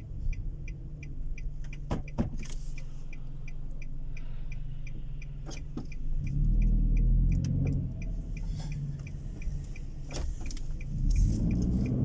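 A turn signal ticks steadily inside the car.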